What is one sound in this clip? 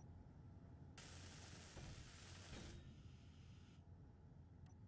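A welding torch hisses and crackles with sparks.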